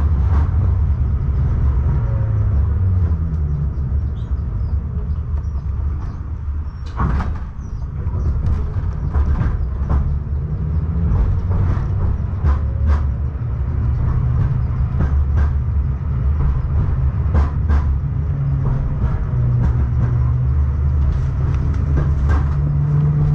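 A vehicle rumbles steadily as it travels along.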